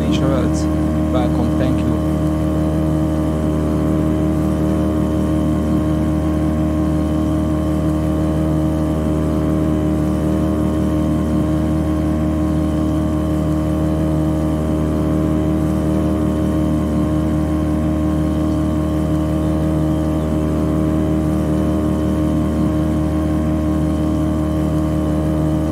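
A boat engine drones steadily at high speed.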